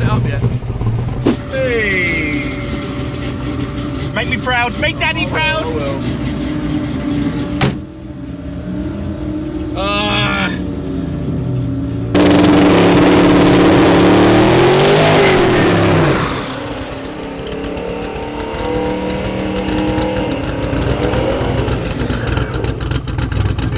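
A car engine idles with a deep, rough rumble.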